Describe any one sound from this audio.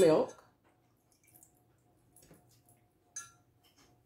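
Milk pours into a metal pot.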